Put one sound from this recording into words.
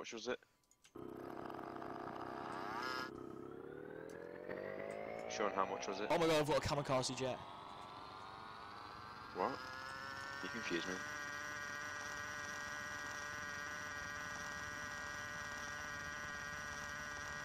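A small aircraft engine starts up and whines, rising in pitch, then holds steady.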